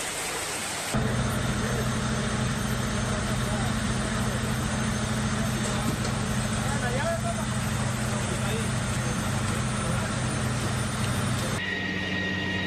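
A fire engine's motor idles with a steady low rumble.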